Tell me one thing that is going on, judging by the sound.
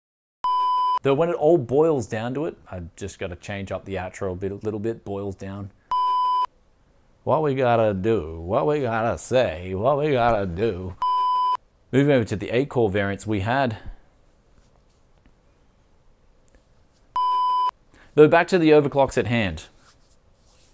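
A man talks calmly and clearly into a microphone close by.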